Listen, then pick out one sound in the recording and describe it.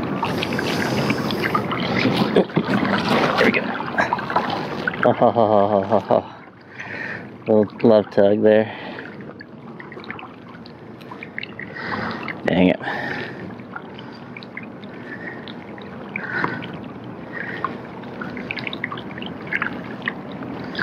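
Water laps against a kayak.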